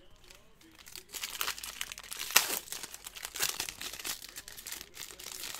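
Cards rustle and slap as a pack is torn open by hand.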